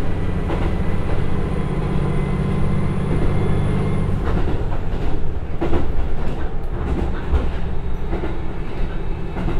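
Train wheels rumble and clack on the rails.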